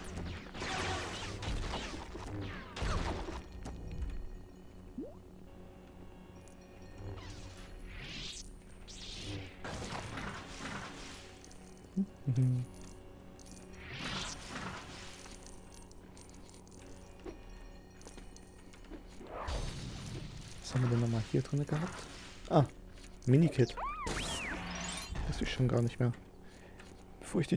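Lightsabers swing and hum with electric buzzing strokes.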